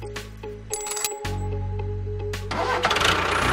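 A metal chain clinks as it is hooked on.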